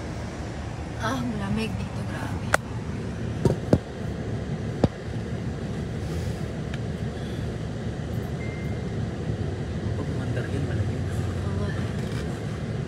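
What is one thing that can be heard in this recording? A young woman speaks casually into a phone microphone.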